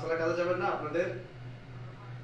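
A man speaks briefly and loudly close by.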